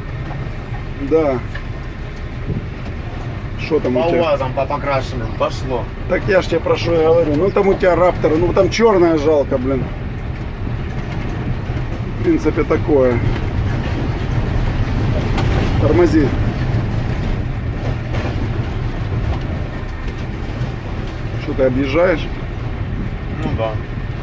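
Tyres crunch and rumble over a bumpy dirt road.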